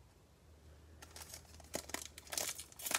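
A foil wrapper crackles and rustles as it is torn open.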